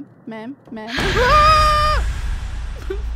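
A young woman screams loudly.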